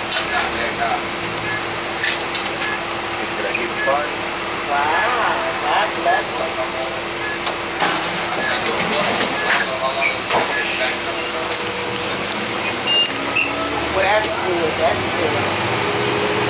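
A bus engine hums steadily while the bus drives.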